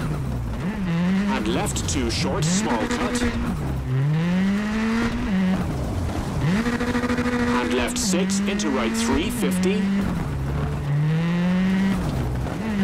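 A rally car engine revs hard and shifts gears up and down.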